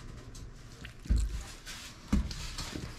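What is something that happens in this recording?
Water pours from a plastic bottle into a tub.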